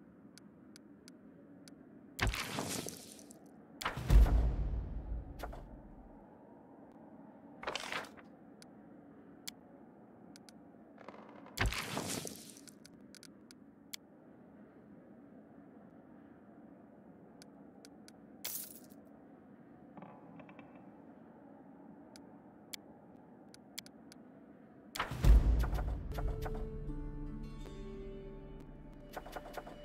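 Short clicks tap as menu buttons are pressed.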